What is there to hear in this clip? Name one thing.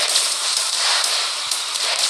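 A toy blaster fires in quick bursts.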